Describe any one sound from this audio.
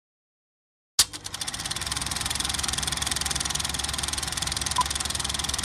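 A film projector starts up with a click and whirs into a rapid, steady clatter.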